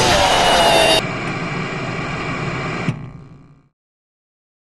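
Static hisses loudly and then cuts out.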